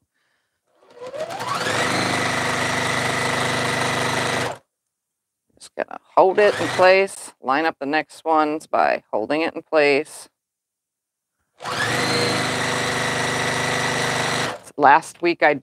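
A high-speed straight-stitch sewing machine runs in bursts, stitching fabric.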